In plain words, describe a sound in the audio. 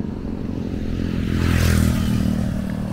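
A motorbike engine roars as it passes close by.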